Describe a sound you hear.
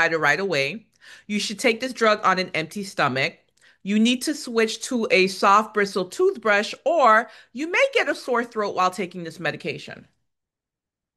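A woman speaks clearly into a microphone, reading out.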